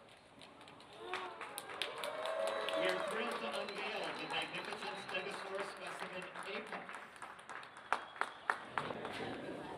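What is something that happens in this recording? A man speaks calmly into a microphone over a loudspeaker, in a large echoing hall.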